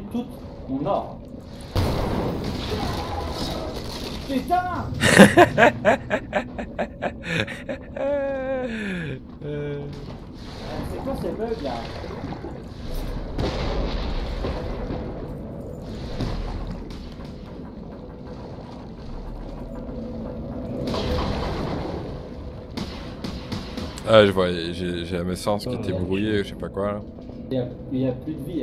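Muffled underwater game sounds rumble and swirl throughout.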